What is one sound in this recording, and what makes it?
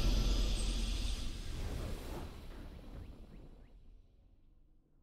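A triumphant game fanfare swells and fades away.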